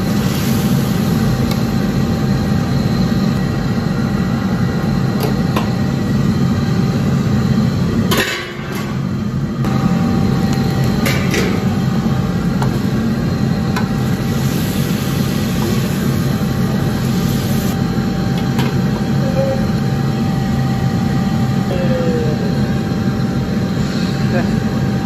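A metal ladle scrapes and clanks against a wok.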